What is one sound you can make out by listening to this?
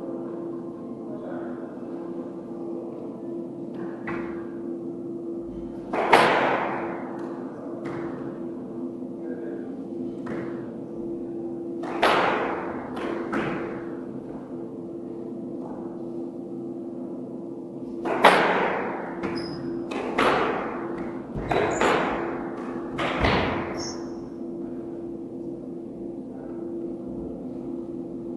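Rubber soles squeak on a wooden floor.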